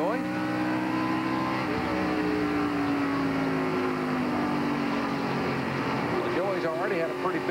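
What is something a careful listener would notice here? A race car engine roars loudly from inside the car.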